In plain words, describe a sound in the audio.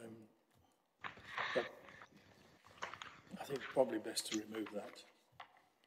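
Paper rustles as papers are handled.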